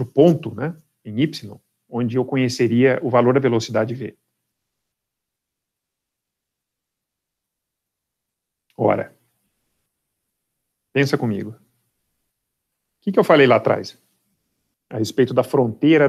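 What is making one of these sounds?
A man lectures calmly through a microphone, pausing between phrases.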